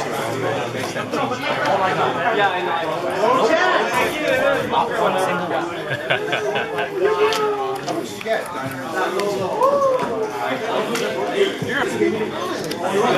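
Playing cards riffle and slap as they are shuffled.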